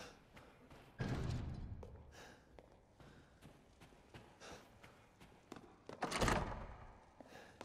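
A locked door rattles as its handle is tried.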